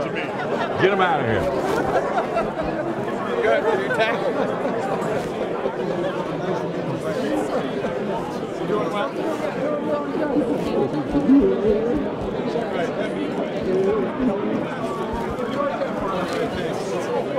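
Men greet each other warmly up close.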